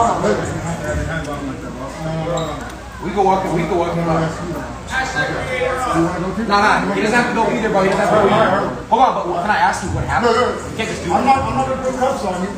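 An older man talks firmly, close by.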